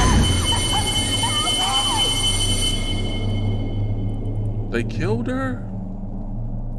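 A young man talks into a microphone close by, with animation.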